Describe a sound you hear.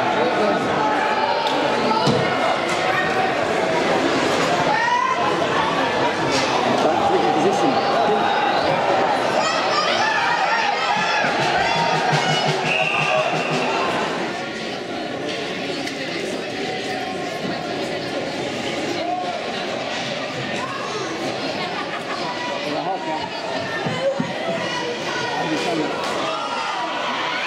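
Spectators shout and cheer in an echoing indoor rink.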